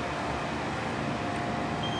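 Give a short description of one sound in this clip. A finger presses a button on an elevator control panel.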